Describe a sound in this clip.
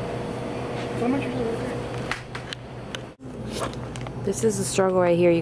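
A young woman talks casually and close by.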